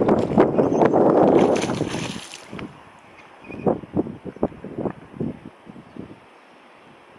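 A fish splashes at the surface of the water nearby.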